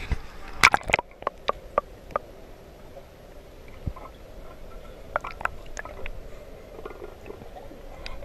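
Bubbles gurgle and pop, muffled underwater.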